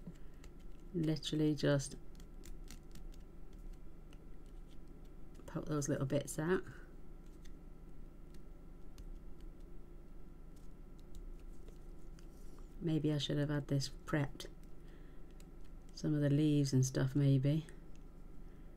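A woman speaks calmly into a microphone, close by, in short phrases.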